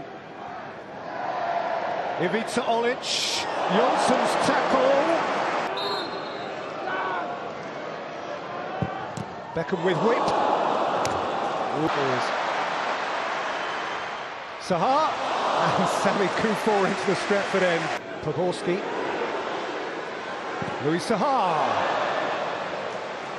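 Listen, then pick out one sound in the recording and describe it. A large stadium crowd roars and cheers in loud swelling waves.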